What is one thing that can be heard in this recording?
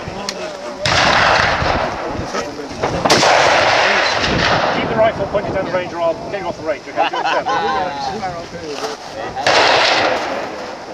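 A rifle fires a loud shot outdoors.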